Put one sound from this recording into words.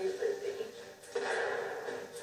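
A pistol shot rings out from a television.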